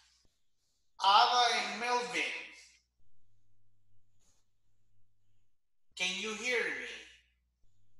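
A man speaks in short bursts over an online call.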